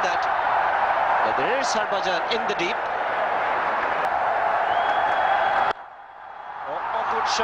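A large crowd murmurs and cheers in the distance, outdoors.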